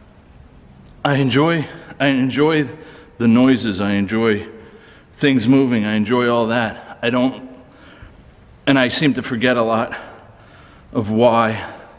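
A middle-aged man speaks close by in a low, tense voice.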